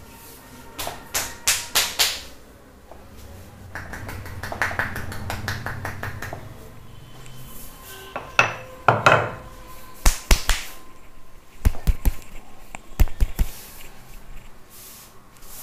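Hands slap and crack rapidly on a man's neck and head.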